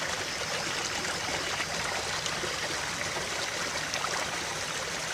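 A shallow stream rushes and splashes steadily over rocks close by.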